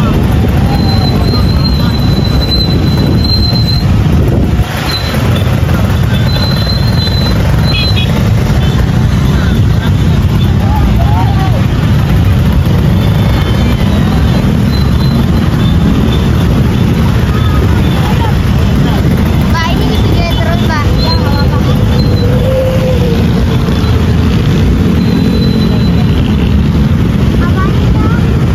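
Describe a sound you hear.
Many motorcycle engines rumble and idle close by in dense traffic.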